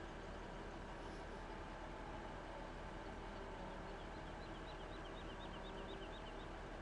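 A tractor engine rumbles steadily at idle.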